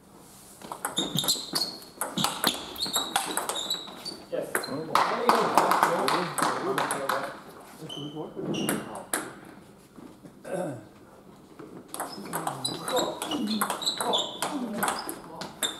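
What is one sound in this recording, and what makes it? Sports shoes squeak sharply on a hard floor.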